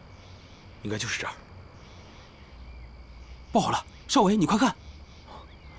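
A young man speaks quietly and tensely up close.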